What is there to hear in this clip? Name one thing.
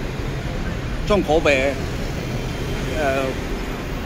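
Motorbike engines hum as they ride past.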